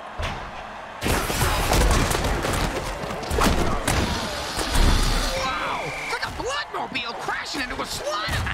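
Heavy bodies crash and thud together in a tackle.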